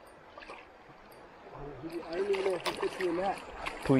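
Water splashes as a net sweeps through it.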